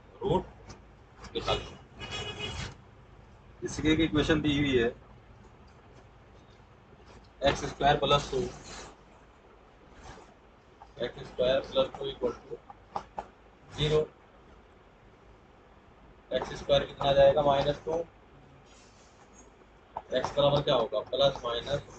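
A man speaks in short bursts, explaining calmly nearby.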